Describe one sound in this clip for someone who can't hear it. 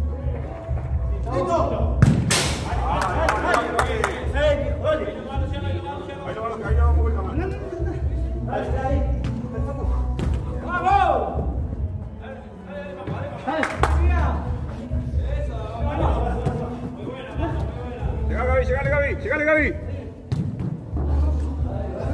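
Men shout and call out to each other in an echoing indoor hall.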